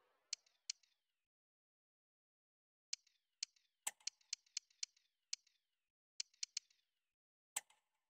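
Short, bright menu clicks tick in quick bursts as selections change.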